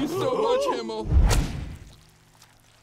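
Flames burst with a loud whoosh.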